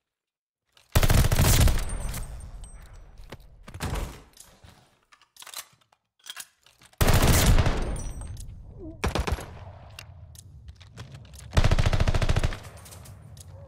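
Rapid gunfire bursts loudly and echoes.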